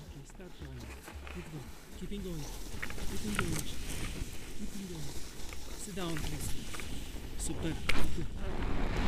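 A woman speaks close to the microphone.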